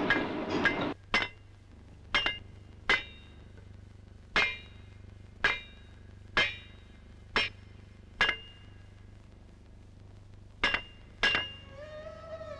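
A heavy hammer strikes stone with loud, sharp blows.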